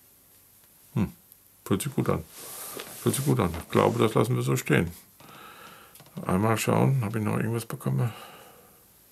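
A middle-aged man speaks into a close microphone with animation.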